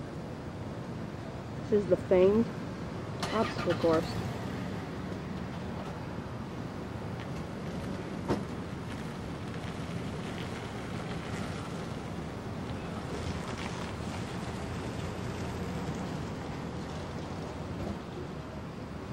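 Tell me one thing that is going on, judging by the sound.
A car rolls steadily along a road with a low hum.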